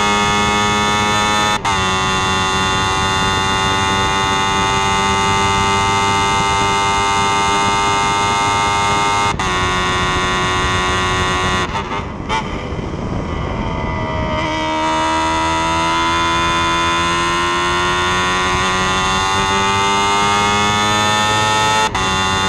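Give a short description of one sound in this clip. A racing car engine screams at high revs close by.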